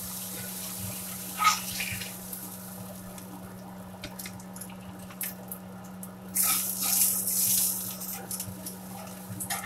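A metal spatula scrapes and clatters against a pan.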